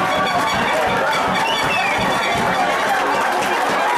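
Young men shout in celebration out in the open.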